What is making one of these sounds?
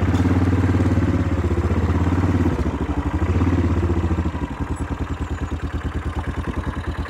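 A motorcycle engine rumbles and putters steadily close by.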